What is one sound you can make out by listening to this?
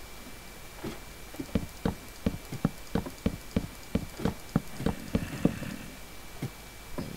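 Footsteps clatter quickly on a wooden ladder.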